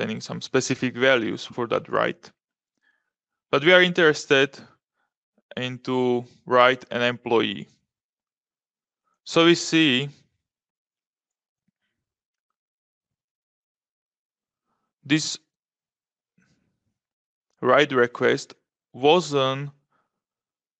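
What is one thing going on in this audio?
A man speaks calmly into a microphone, in short phrases with pauses.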